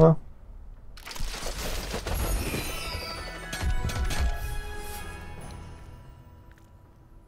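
A gift box bursts open with a whoosh and bright, sparkling chimes.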